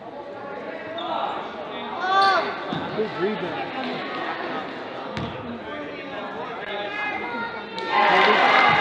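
Sneakers squeak on a hard court in an echoing gym.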